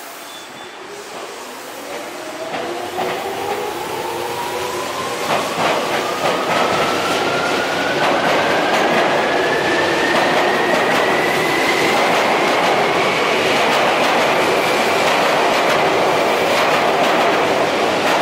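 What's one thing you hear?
An electric train motor whines, rising steadily in pitch.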